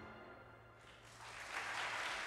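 A big band ends a piece on a held final chord in a large hall.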